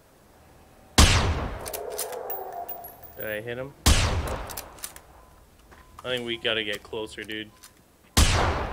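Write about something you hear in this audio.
A rifle fires sharp, loud shots that echo away.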